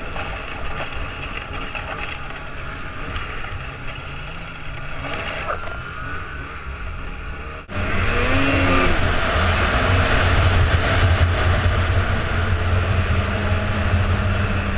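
Wind rushes past a helmet.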